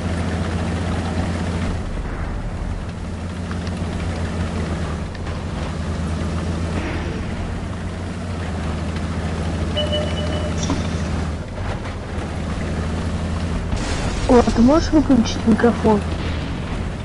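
Tank tracks clatter over rubble.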